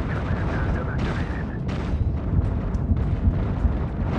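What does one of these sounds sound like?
Laser blasts and explosions crackle in bursts.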